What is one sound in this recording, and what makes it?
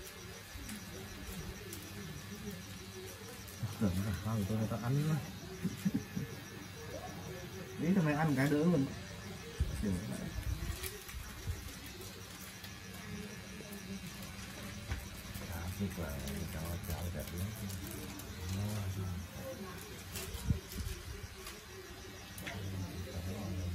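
A tattoo machine buzzes steadily.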